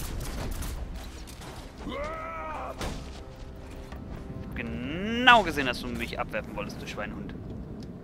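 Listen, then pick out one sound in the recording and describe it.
Punches and kicks thud hard in a fast brawl.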